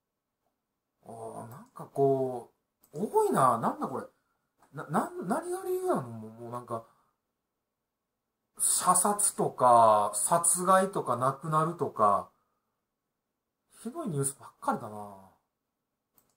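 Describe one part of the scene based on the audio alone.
A man speaks calmly into a microphone, close by, in short bursts.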